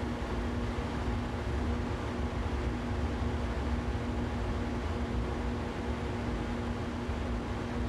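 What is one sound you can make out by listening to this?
A train's wheels rumble steadily along the rails.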